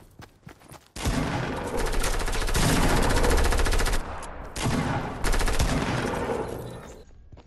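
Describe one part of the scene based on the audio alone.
Rapid gunfire rattles nearby.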